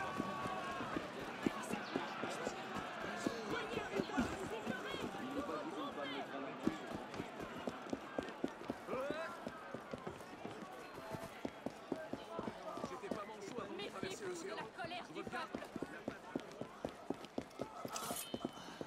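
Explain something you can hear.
A crowd of people chatter and murmur nearby.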